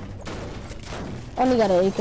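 A pickaxe strikes metal with sharp clanks.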